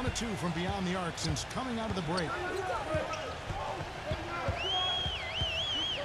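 Basketball shoes squeak on a hardwood floor.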